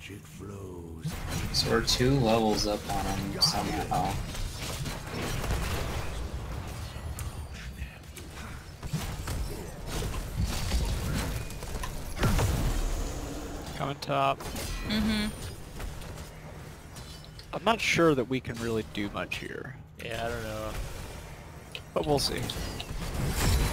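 Magic blasts and weapon hits crackle and clash in a fight.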